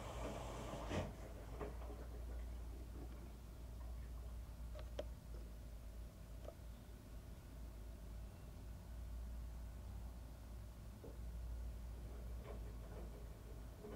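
Wet laundry tumbles and thuds inside a washing machine drum.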